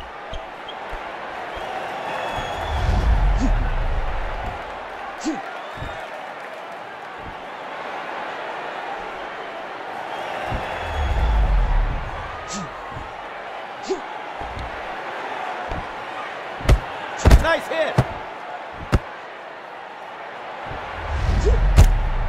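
Boxing gloves land punches with dull thuds.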